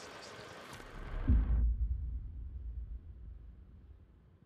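A creature lets out a loud, deep roar.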